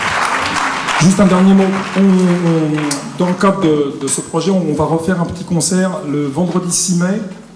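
A large band plays lively music in a reverberant hall.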